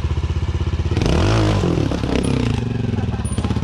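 A trial motorbike engine revs loudly as the bike climbs over rocks.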